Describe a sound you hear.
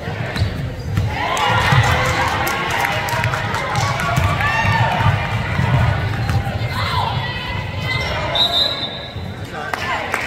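A crowd of young women and spectators shout and call out in an echoing gym.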